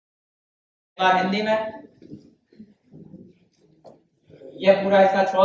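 A man lectures with animation.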